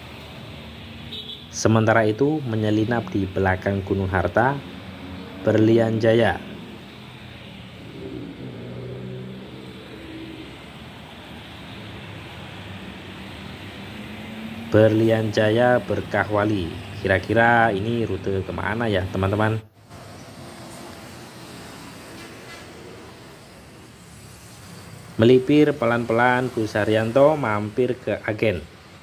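Traffic and motorbikes rumble steadily along a street.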